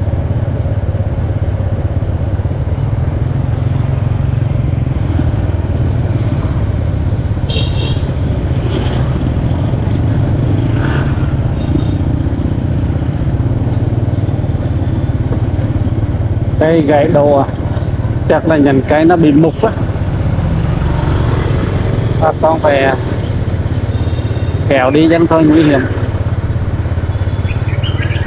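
A motorbike engine hums steadily close by.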